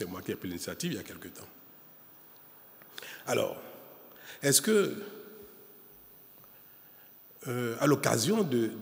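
A middle-aged man speaks calmly and deliberately into a microphone, with pauses between phrases.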